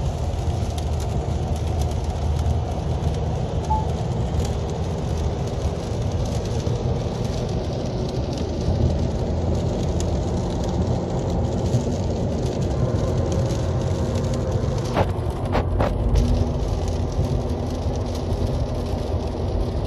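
A car engine hums steadily with road noise inside the cabin.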